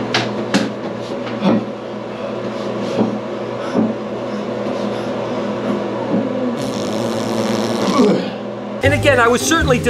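A young man sings.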